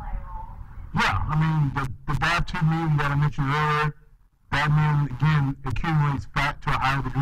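A man speaks up close, with animation.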